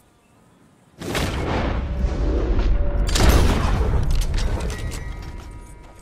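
A rifle fires once, and a long rolling echo slowly fades.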